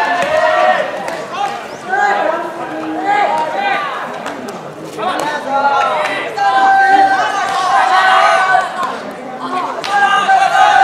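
Young boys shout and chant loudly outdoors.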